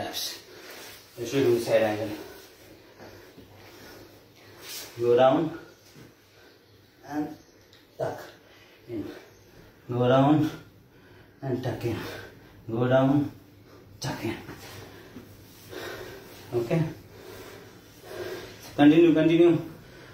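Sneakers tap and scuff on a floor mat.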